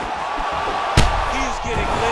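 A heavy kick lands with a sharp thud.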